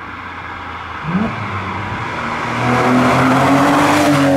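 A sports car engine roars louder as the car approaches.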